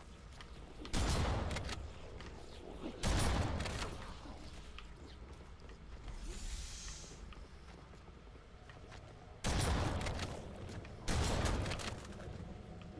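Rapid gunfire blasts out in loud bursts.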